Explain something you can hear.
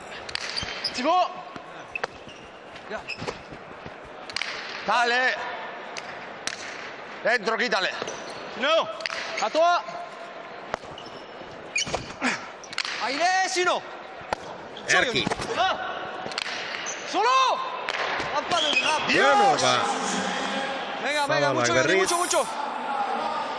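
Sneakers squeak sharply on a smooth floor.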